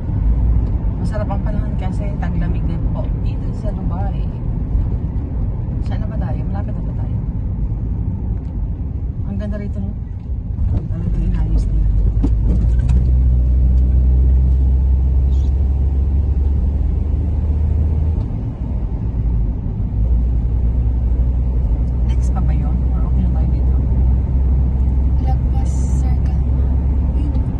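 Road noise rumbles inside a moving car.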